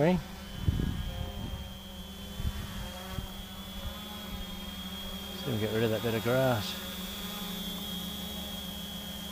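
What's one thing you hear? A drone's motors whine steadily overhead.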